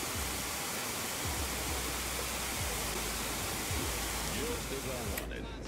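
A pressure washer sprays water with a loud steady hiss.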